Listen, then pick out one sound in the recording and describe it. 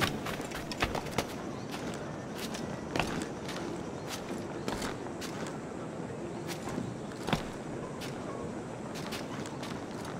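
Hands scrape and grip stone during a climb.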